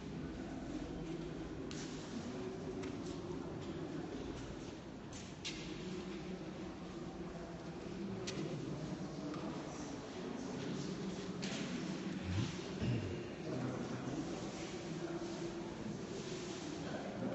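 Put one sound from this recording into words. Several men and women read aloud together, their voices overlapping in a large echoing hall.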